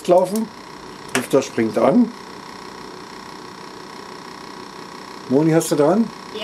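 A small cooling fan whirs with a steady hum.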